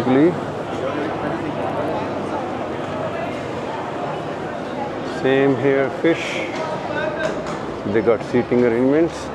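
A crowd chatters all around in a busy, echoing space.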